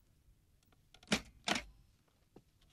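A door opens with a knock and a creak.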